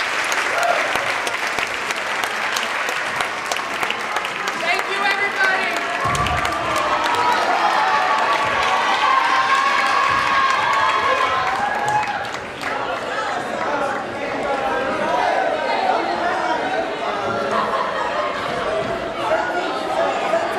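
A group of young men and women sing together loudly in an echoing hall.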